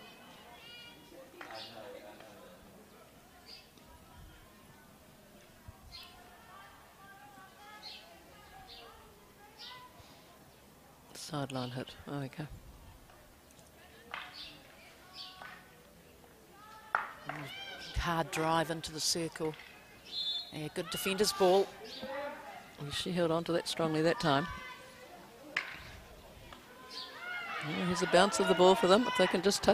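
Hockey sticks smack a ball with sharp cracks.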